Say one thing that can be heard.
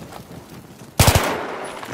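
A rifle fires a loud, sharp shot close by.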